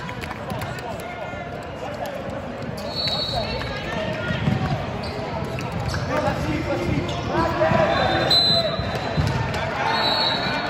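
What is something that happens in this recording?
Teenage boys call out and talk to each other in a large echoing hall.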